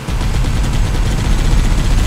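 A mounted gun fires a burst of rapid shots.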